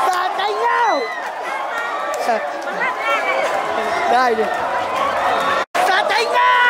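A large crowd chants and cheers in an open stadium.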